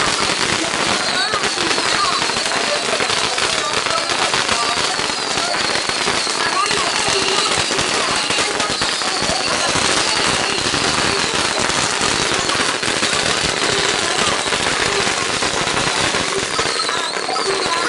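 Firecrackers crackle and pop rapidly nearby.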